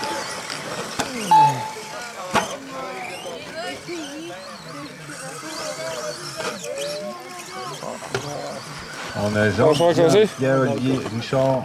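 Radio-controlled cars whine as they race around a dirt track.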